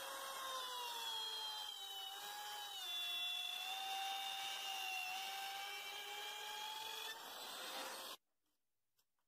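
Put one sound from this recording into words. A power router whines loudly as it cuts wood.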